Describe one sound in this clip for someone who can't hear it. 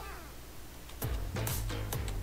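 Upbeat electronic game music starts playing.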